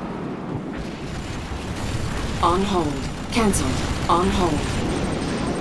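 Heavy vehicle engines rumble low as armoured vehicles roll along.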